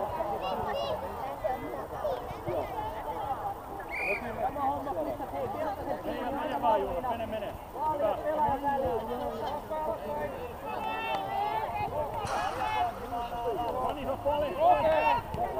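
Children shout and call out to each other across an open outdoor field.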